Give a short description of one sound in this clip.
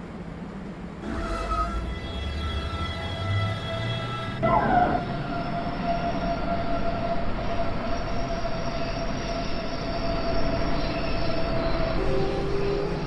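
An electric train pulls away, its motors whining and rising in pitch.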